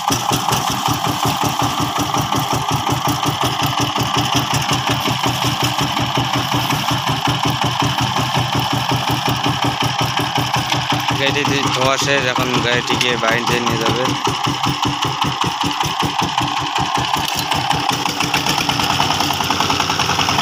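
A diesel engine chugs loudly with a fast, steady knocking beat.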